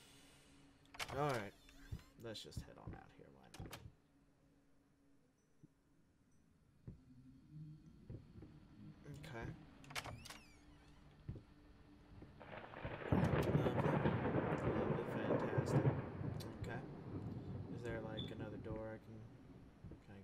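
A man talks close to a microphone, in short bursts.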